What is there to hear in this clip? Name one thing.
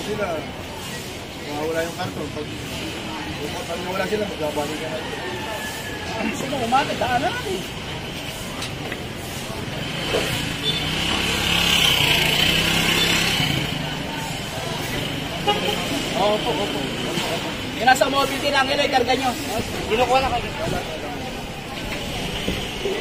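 Outdoor street bustle murmurs in the background.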